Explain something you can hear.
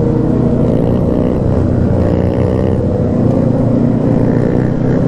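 Other motorcycle engines roar nearby.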